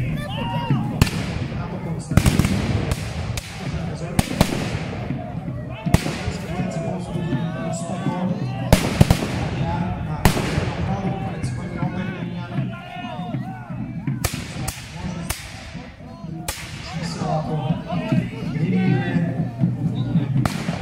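Muskets fire in sharp, loud bangs, one after another, echoing across open ground.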